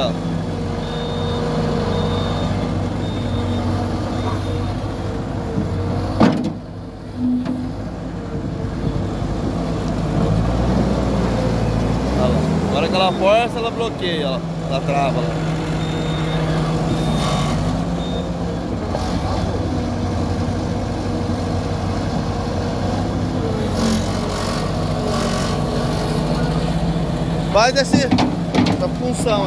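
A diesel engine idles and rumbles close by.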